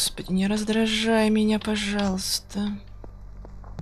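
A boy speaks loudly and with animation, close to a microphone.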